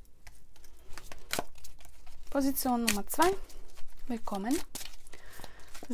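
Playing cards are shuffled with quick, crisp flicks.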